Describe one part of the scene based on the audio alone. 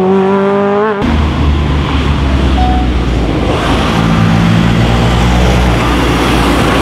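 A second rally car engine roars loudly as it approaches.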